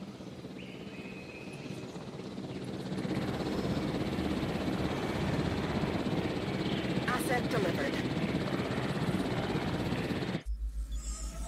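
A helicopter's rotor roars close by.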